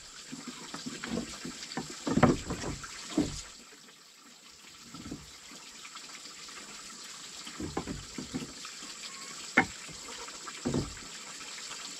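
Wooden blocks knock and clatter against each other.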